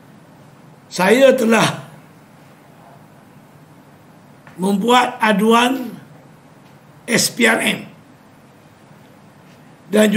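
An elderly man speaks emphatically in short bursts close to microphones.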